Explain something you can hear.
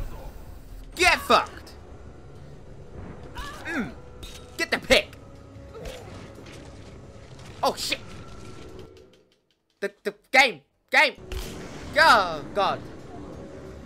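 A young woman grunts and cries out with effort, close by.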